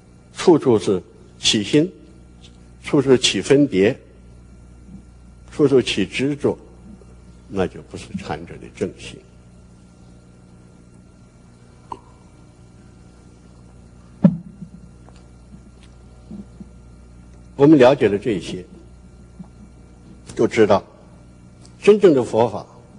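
An elderly man speaks slowly and calmly through a microphone, with long pauses.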